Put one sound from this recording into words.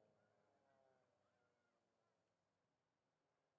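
Small propeller planes drone overhead, their engine hum sinking and fading.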